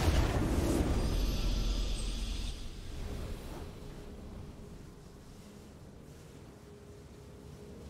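A victory fanfare swells and fades.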